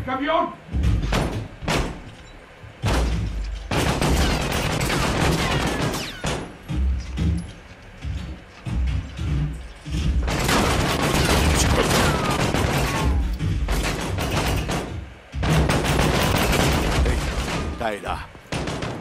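Gunshots fire in rapid bursts, loud and close.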